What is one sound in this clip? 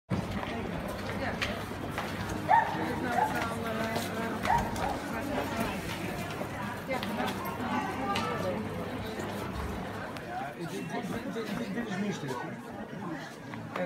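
A crowd of adult men and women chatters nearby.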